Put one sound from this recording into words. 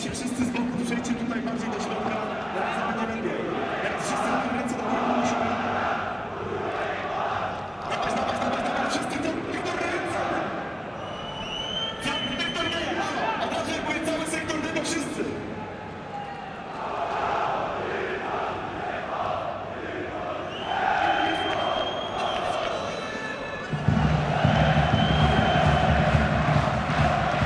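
A large stadium crowd murmurs and chants in the open air.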